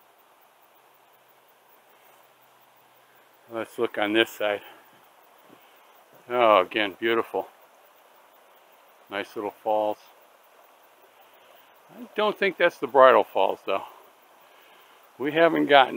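A shallow stream trickles gently over rocks.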